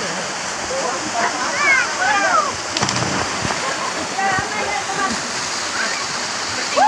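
A waterfall pours into a pool.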